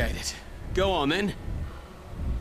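A man speaks with emotion, close by.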